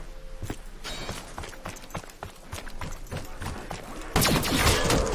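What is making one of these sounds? Footsteps tread on hard ground.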